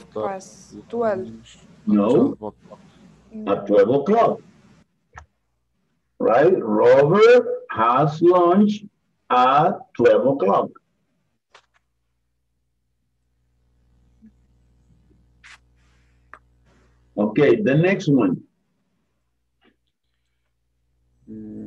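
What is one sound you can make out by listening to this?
A woman speaks calmly through an online call, pausing between phrases.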